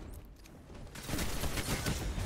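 A gun fires rapidly in bursts.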